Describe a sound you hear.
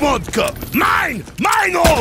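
An electric weapon crackles and zaps.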